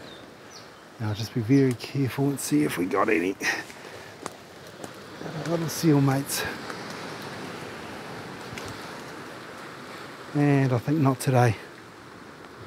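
A man talks close by, calmly, in short bursts.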